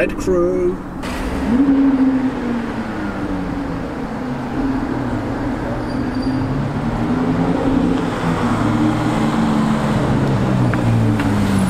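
A sports car engine idles nearby with a deep, throaty rumble that rises and falls.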